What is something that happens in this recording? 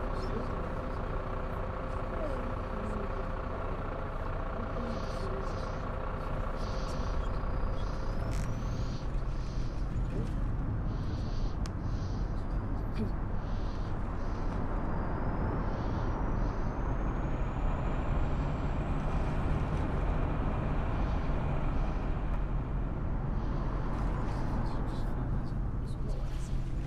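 A bus engine idles with a low rumble, then revs up as the bus pulls away and drives on.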